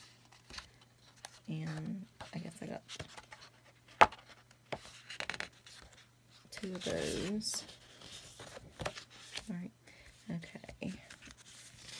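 Stiff paper rustles and crackles as it is bent and handled.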